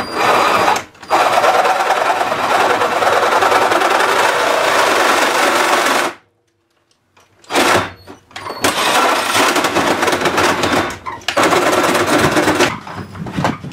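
A reciprocating saw cuts loudly through metal.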